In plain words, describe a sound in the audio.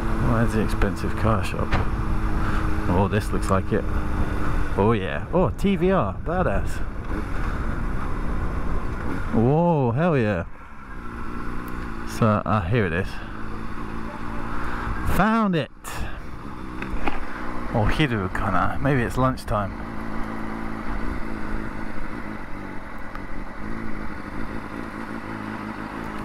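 A motorcycle engine rumbles and revs close by.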